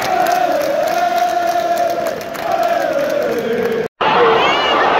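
A large stadium crowd sings a chant together.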